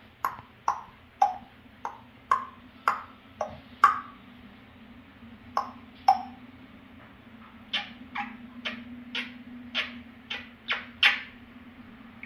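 A parrot makes quick, sharp clicking and popping sounds close by.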